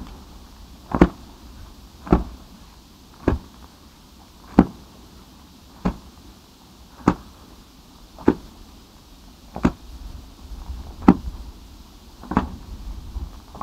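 Grass fire crackles.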